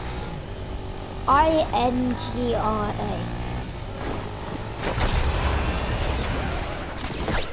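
A quad bike engine hums and revs.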